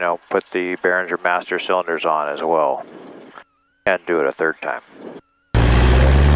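A man speaks calmly through a headset microphone.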